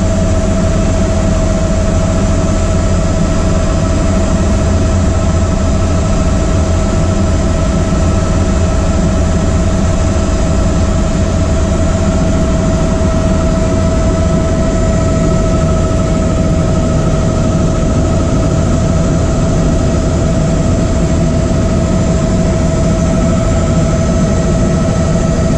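A helicopter engine and rotor drone loudly and steadily.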